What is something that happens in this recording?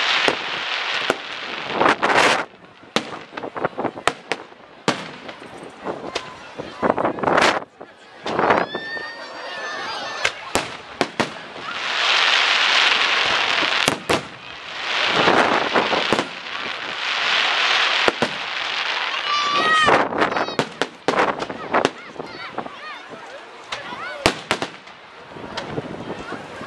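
Fireworks bang and pop in quick bursts.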